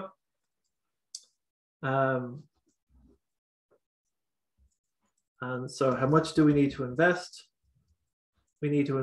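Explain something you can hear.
A man speaks calmly and close to a microphone, in short phrases with pauses.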